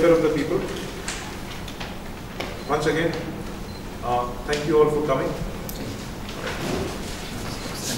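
A man speaks calmly into microphones.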